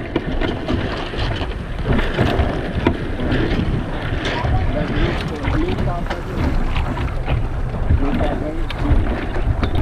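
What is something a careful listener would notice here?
A sail flaps and rattles in the wind.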